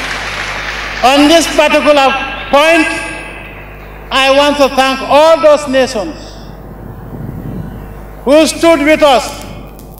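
A man speaks forcefully into a microphone over loudspeakers, echoing outdoors.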